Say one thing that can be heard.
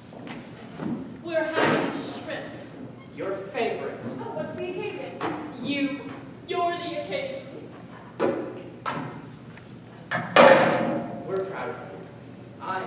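A man speaks with animation on a stage.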